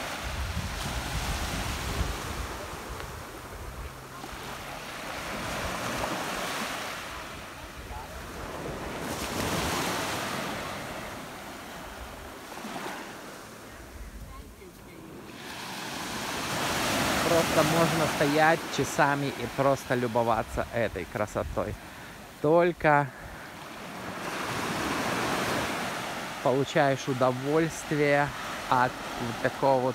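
Small waves wash gently onto a sandy shore in slow swells.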